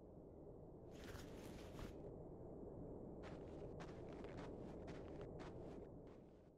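Footsteps tap softly on a floor.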